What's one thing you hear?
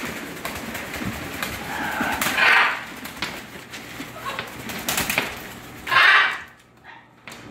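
A parrot flaps its wings in quick flurries.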